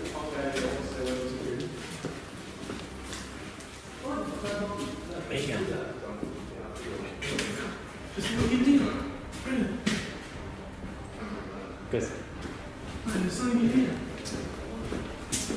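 A man talks in a low voice nearby.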